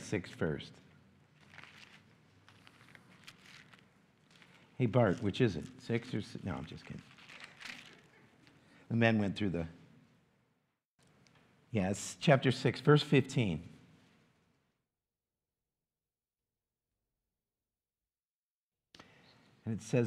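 An older man speaks calmly into a microphone, pausing now and then.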